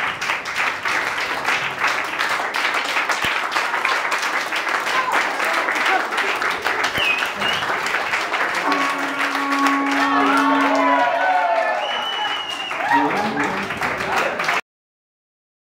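A group of people cheers and laughs.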